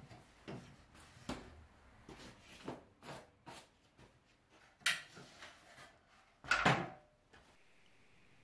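An aluminium ladder clanks and clatters as it is moved.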